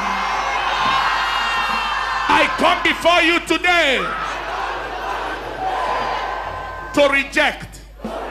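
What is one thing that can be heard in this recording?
A crowd of men and women prays aloud together outdoors.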